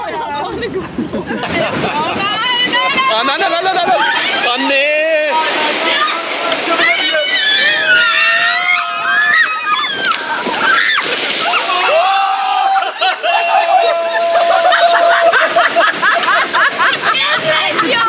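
A young woman laughs excitedly close by.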